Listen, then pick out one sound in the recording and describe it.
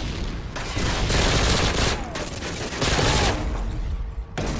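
Automatic gunfire rattles in loud bursts.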